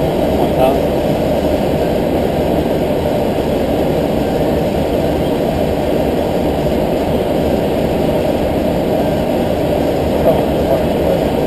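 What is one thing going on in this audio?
A steady low roar of jet engines and rushing air fills the cockpit.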